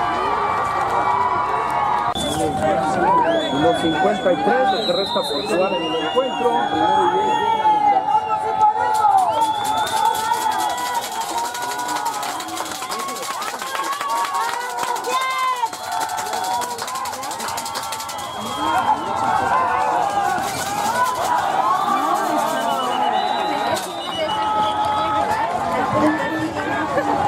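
A crowd of spectators chatters and shouts outdoors.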